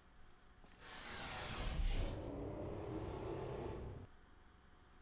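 An elevator whooshes and hums as it moves.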